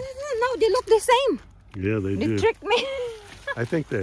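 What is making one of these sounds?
A plastic bag rustles as an apple drops into it.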